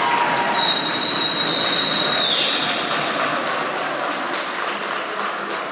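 Young players shout and cheer in an echoing hall.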